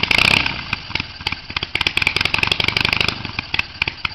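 A man revs a motorcycle engine in short bursts.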